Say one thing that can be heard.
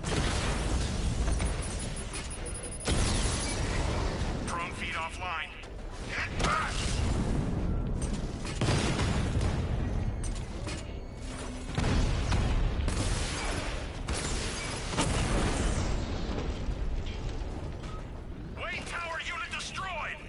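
Cannon fire and explosions boom and crackle in bursts.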